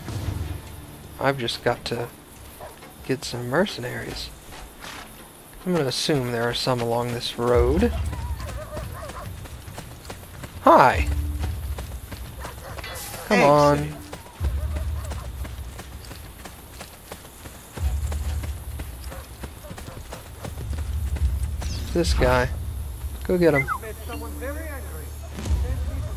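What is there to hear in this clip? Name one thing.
Footsteps crunch on a stone path.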